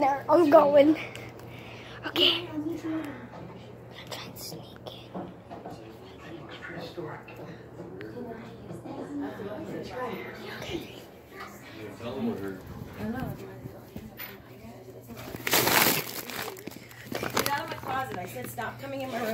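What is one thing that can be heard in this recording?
A young boy talks animatedly close to a phone microphone.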